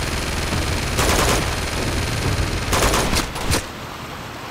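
A pistol fires a few shots.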